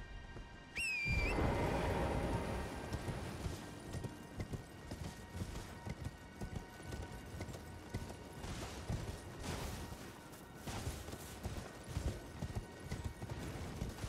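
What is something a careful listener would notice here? Hooves clop rapidly on stone as a horse gallops.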